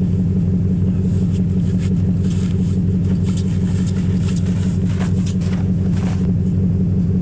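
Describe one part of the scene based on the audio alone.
Boots crunch through snow as a man walks close by.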